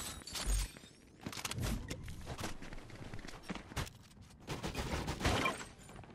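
Footsteps patter on stone and wooden stairs.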